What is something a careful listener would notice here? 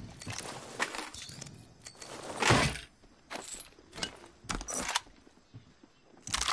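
Short metallic clicks and rattles sound as gear is picked up in a video game.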